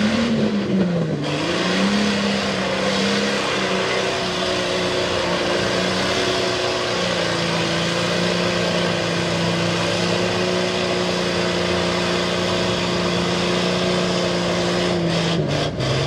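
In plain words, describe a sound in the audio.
A truck engine roars loudly at high revs.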